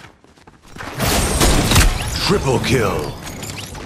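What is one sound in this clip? Video game gunshots crack in quick bursts.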